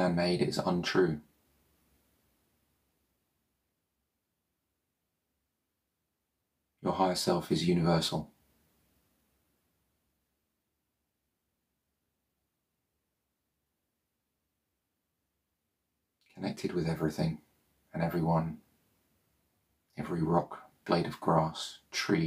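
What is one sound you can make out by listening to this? A man speaks calmly and softly into a nearby microphone, with long pauses between phrases.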